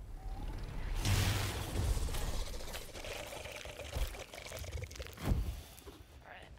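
A sword slashes and strikes a creature with sharp metallic hits.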